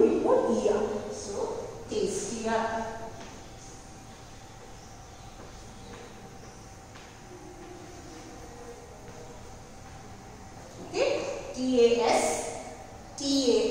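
A woman speaks clearly in a calm, teaching voice.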